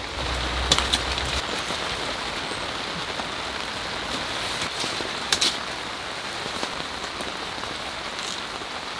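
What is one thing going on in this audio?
Tent fabric rustles and crinkles as it is handled.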